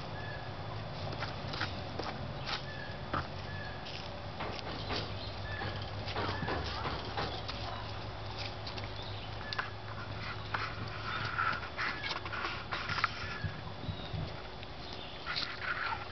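Hens cluck and murmur softly close by.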